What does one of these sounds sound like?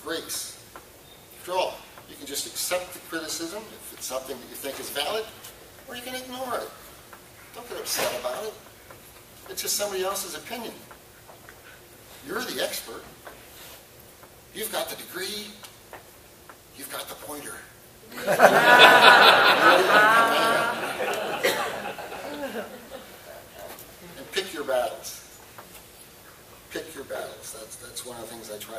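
An elderly man speaks calmly into a microphone in an echoing room.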